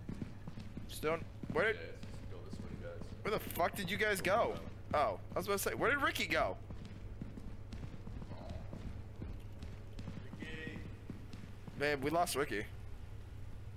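A young man speaks close to a microphone in short, animated bursts.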